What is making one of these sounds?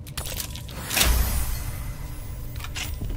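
A bright chime rings out with a deep boom.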